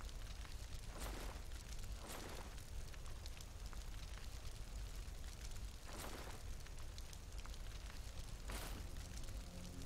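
Soft whooshing clicks sound as menu items change.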